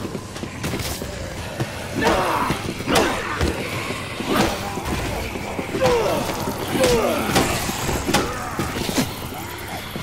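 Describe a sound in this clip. Heavy blows thud and smack into zombies in quick succession.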